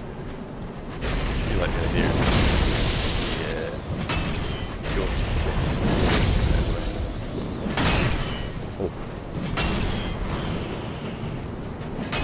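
Weapons clash and swish in a fight.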